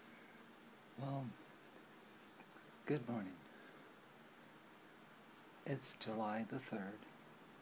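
A middle-aged woman speaks calmly and close by in short phrases.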